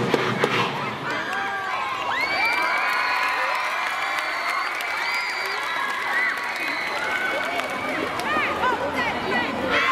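A crowd of young people cheers and shrieks loudly outdoors.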